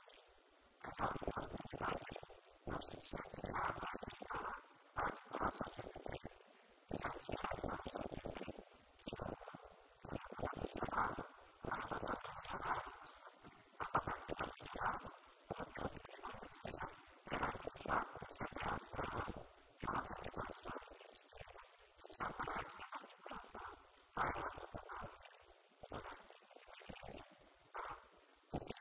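An elderly man speaks steadily into a microphone, heard through a loudspeaker.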